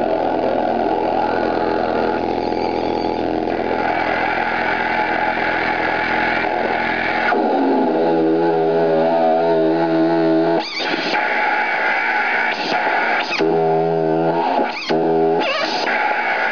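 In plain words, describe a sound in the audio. Electronic droning tones play through an amplifier and shift in pitch and texture.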